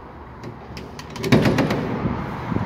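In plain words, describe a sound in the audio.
A door's push bar clunks and the door swings open.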